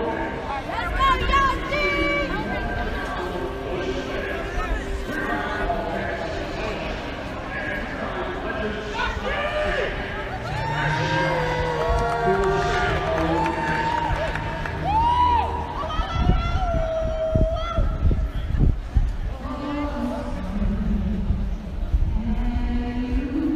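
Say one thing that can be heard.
A man sings into a microphone, heard through loudspeakers echoing across an open stadium.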